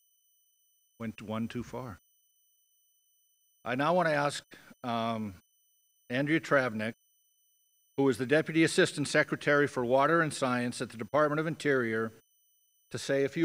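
A middle-aged man speaks calmly through a microphone and loudspeakers, pausing between phrases.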